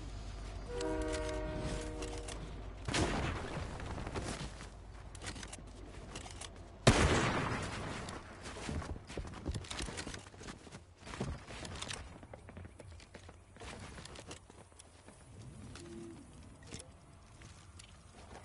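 Building pieces snap and clatter into place in quick bursts.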